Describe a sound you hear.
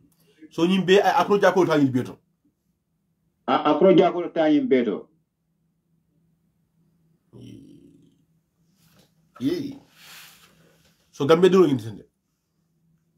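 A young man speaks calmly and close by, in short bursts with pauses.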